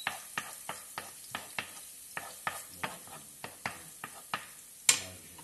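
Onions crackle and pop softly in a frying pan.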